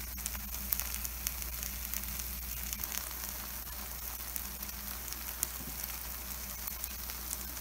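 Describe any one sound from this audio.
A wooden skewer taps and scrapes against a metal pan.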